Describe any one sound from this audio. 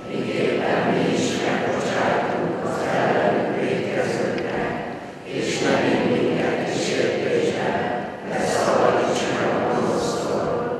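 A man speaks calmly close by, his voice echoing in a large hall.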